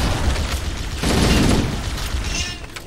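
A grenade explodes with a loud boom.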